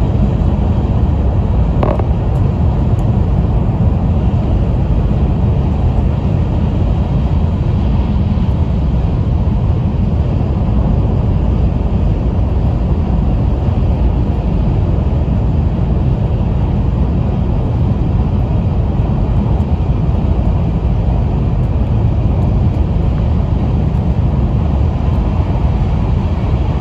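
A fast train hums and rumbles steadily from inside the carriage.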